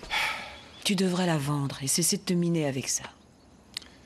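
A man speaks in a strained, emotional voice close by.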